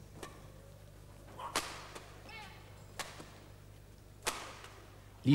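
Badminton rackets strike a shuttlecock in sharp pops.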